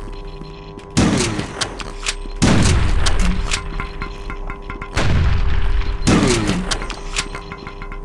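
A shotgun fires loud blasts that echo off hard walls.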